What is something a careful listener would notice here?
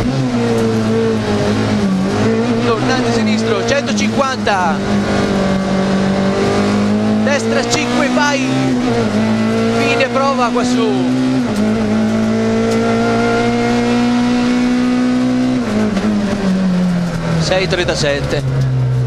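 A rally car engine roars loudly, revving up and dropping as gears change.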